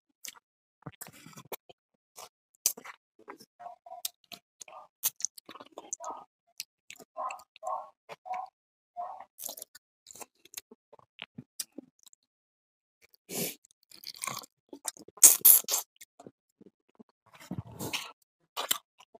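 A man slurps and sucks food from his fingers.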